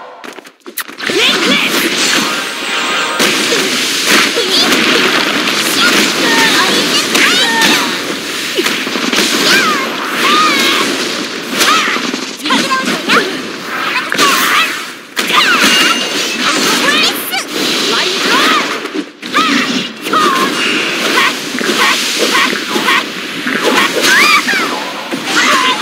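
Magic spells whoosh and burst in quick succession.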